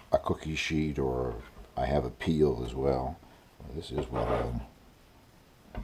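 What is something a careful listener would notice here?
A metal scraper scrapes across a wooden board.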